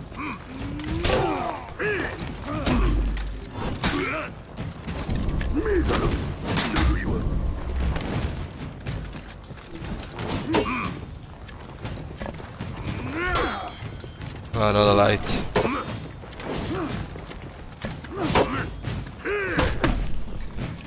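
Steel swords clash with sharp metallic clangs.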